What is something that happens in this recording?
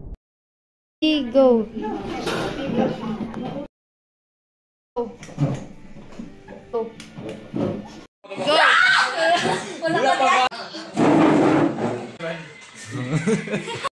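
Teenage boys and girls shout excitedly close by.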